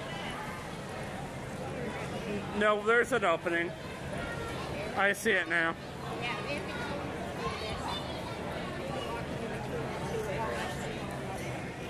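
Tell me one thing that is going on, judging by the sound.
A crowd of people chatters and murmurs outdoors.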